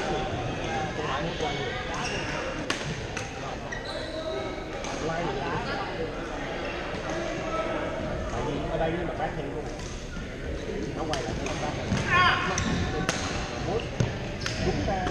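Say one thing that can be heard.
Voices of many people echo around a large hall.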